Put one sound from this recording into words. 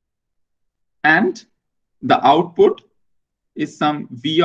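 A man speaks calmly through a microphone in an online call, in short phrases with pauses.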